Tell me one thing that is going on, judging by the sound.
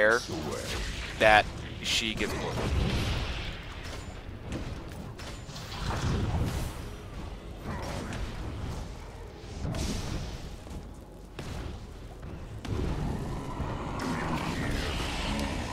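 Magic blasts and weapon strikes clash in a fight.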